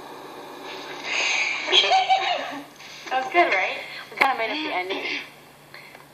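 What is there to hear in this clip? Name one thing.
Two teenage girls talk and laugh with animation, heard through a small speaker.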